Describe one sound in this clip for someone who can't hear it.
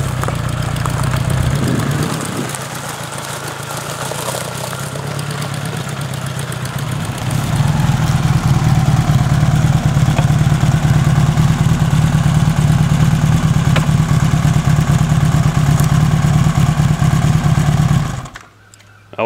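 A motorcycle engine runs with a loud, steady rumble, then cuts out.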